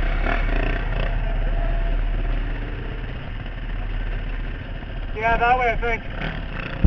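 Dirt bike engines rumble and idle close by.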